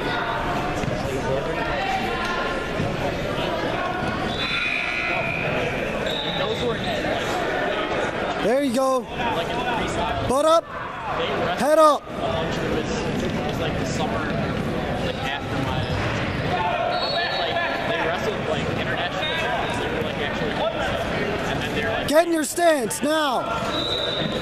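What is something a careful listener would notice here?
Many people murmur and chatter in a large echoing hall.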